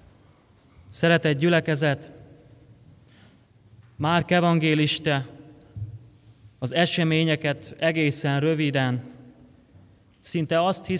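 A young man speaks calmly and slowly through a microphone, in an echoing hall.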